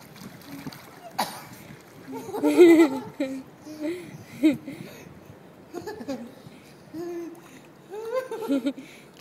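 Water splashes softly as a small child paddles.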